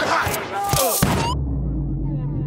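A loud blast booms.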